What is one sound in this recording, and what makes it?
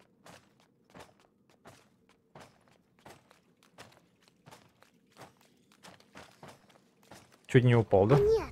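Quick, light footsteps tap on a stone floor.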